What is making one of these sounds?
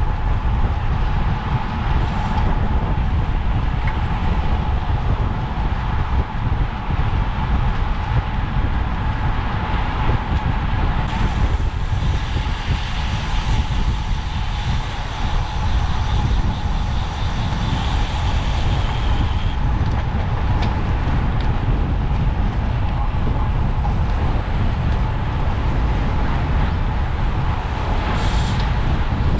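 Wind rushes loudly past, as if riding fast outdoors.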